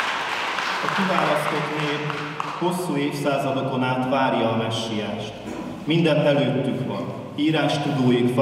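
A middle-aged man reads aloud calmly through a microphone.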